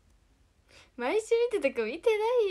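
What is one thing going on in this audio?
A young woman speaks with animation, close to a phone microphone.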